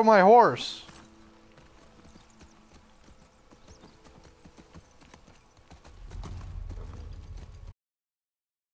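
A horse's hooves thud on grass.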